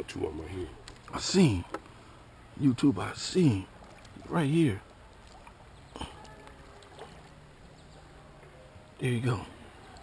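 A small net splashes through shallow water.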